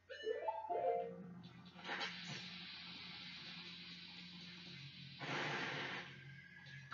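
Video game sound effects chime and whoosh through a television speaker.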